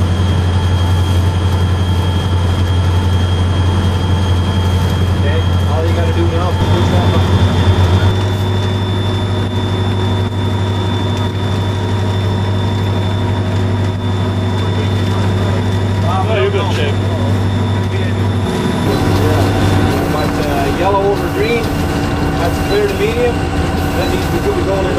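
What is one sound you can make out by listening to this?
A diesel locomotive engine rumbles steadily and loudly.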